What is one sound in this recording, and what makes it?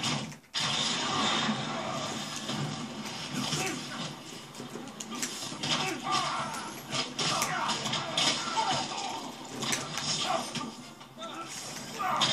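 Punches and blows thud and crack from a fighting game through a television speaker.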